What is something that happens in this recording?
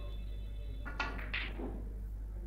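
A cue strikes a ball with a sharp click.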